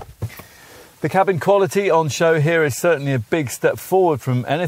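A middle-aged man talks calmly and clearly into a close microphone.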